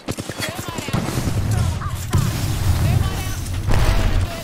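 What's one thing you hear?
Explosions boom close by with deep rumbling.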